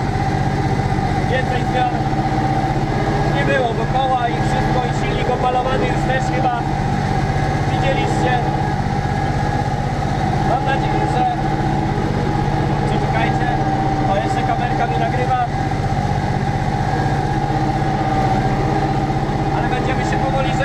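A tractor engine drones loudly and steadily from inside the cab.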